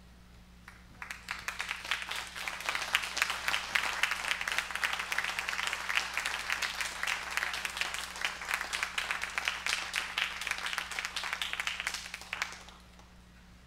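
An audience applauds steadily, then the applause fades out.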